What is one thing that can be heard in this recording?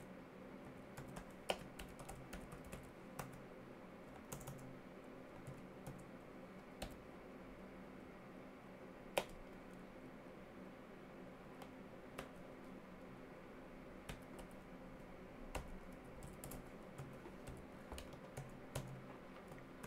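Keys click on a keyboard in quick bursts.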